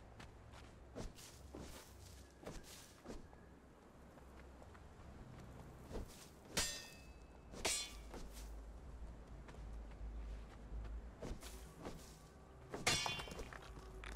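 Branches rustle and snap as a bush is harvested by hand.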